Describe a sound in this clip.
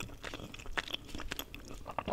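Chopsticks click against a metal pan.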